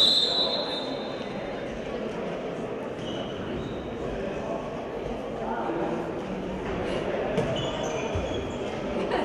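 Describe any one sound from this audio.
Players' footsteps patter across an echoing hall.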